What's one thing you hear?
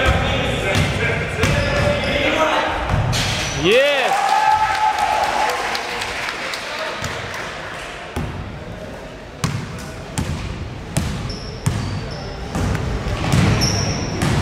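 Young players shout to each other in a large echoing hall.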